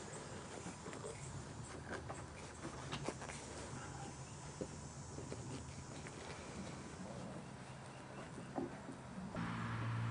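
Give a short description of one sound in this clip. Plastic pipes knock and scrape as they are fitted together.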